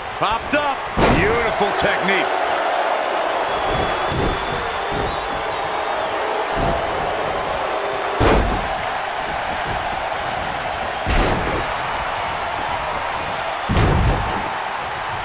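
Heavy bodies slam onto a wrestling mat with loud thuds.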